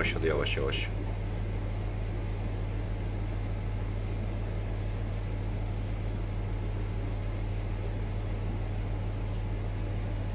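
Air bubbles gurgle steadily through water in a fish tank.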